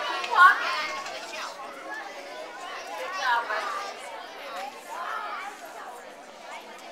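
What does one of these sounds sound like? A man talks to the children.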